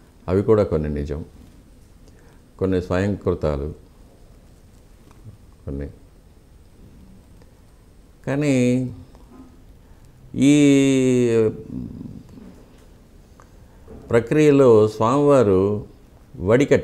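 An elderly man speaks calmly and close up, in short phrases with pauses.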